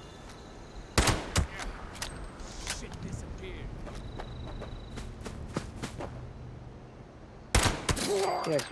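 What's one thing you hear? A pistol fires loud single shots.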